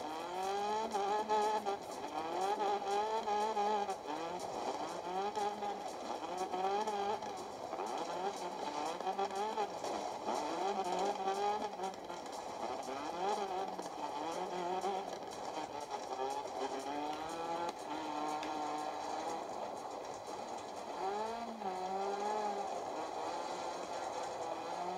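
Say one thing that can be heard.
A rally car engine revs high and drops as the car shifts gears.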